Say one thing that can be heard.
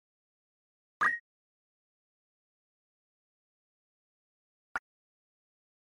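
A short electronic menu blip sounds.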